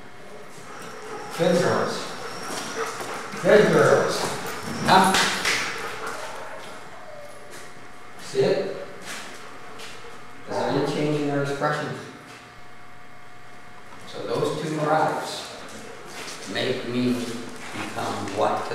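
Dog paws click on a hard floor.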